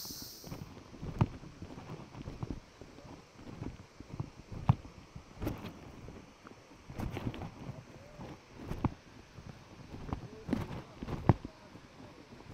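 Footsteps crunch along a forest trail.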